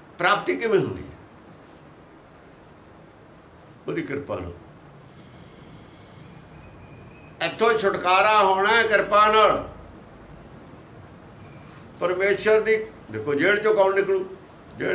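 An elderly man speaks calmly and firmly in bursts, close by, with pauses between phrases.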